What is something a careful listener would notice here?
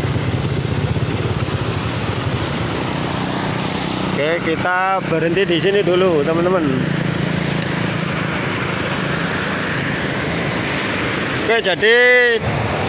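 Muddy floodwater rushes loudly over rocks.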